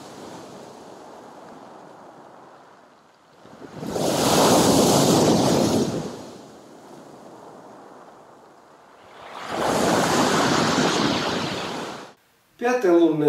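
Water rattles back over loose pebbles.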